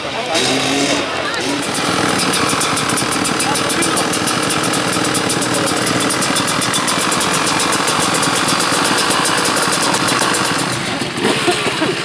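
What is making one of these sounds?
A dirt bike engine idles with a rapid, buzzing rattle close by.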